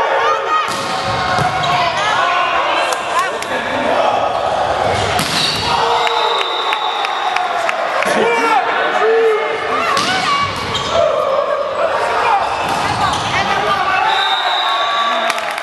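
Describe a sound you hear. Players' shoes squeak sharply on a hard court in a large echoing hall.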